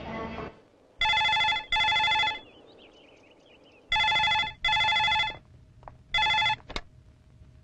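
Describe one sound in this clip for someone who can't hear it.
A telephone rings in repeated bursts.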